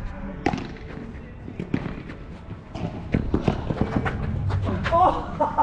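Padel balls pop sharply off rackets and bounce on the court, outdoors.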